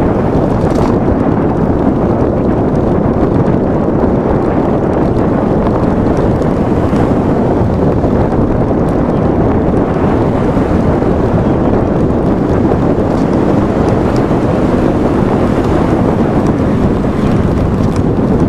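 A car engine hums steadily with road noise from inside a moving car.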